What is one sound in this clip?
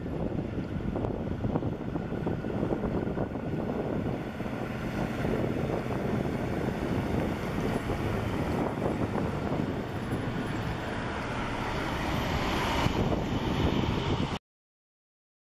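A heavy truck engine rumbles as it approaches and passes close by.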